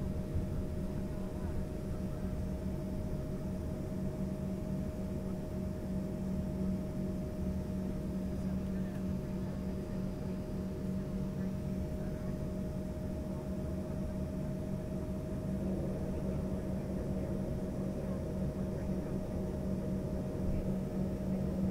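A jet engine hums and whines steadily close by.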